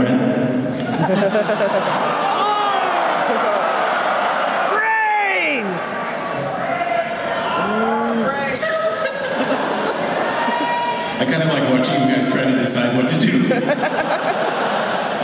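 An electric guitar plays loudly through amplifiers in a large hall, with bending notes.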